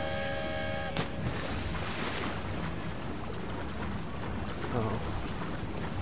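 Water sloshes as someone swims.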